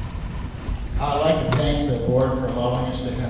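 An elderly man speaks through a microphone in a large echoing hall.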